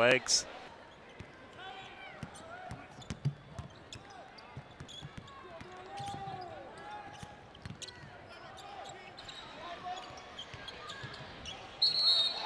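Sneakers squeak sharply on a hardwood court.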